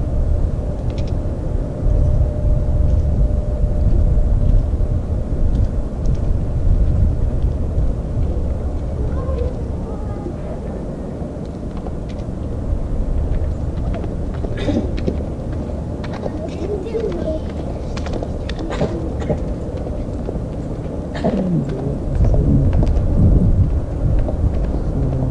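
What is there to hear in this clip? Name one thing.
A jet engine roars in the distance as a fighter plane speeds down a runway.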